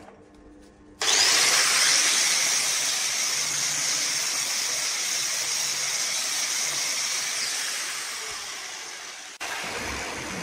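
An angle grinder whirs at high speed, then winds down.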